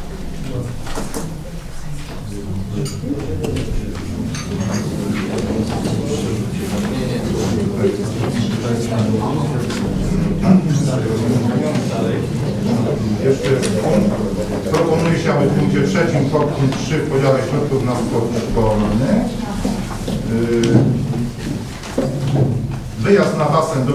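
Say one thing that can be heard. Many men and women murmur and talk at once in a large room.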